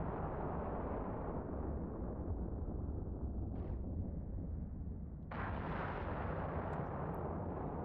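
A spaceship's engines rumble in a deep, steady drone.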